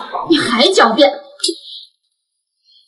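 A young woman speaks sharply and indignantly into a close microphone.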